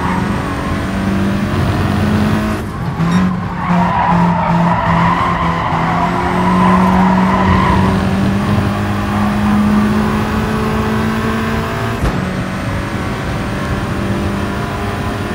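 A racing car engine roars steadily and rises in pitch through the gears.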